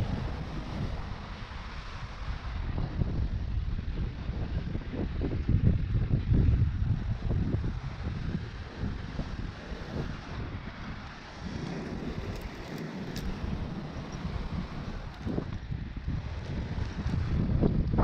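Wind buffets outdoors, rumbling steadily.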